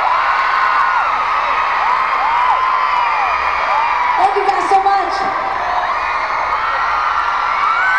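A large crowd cheers and screams loudly in an echoing arena.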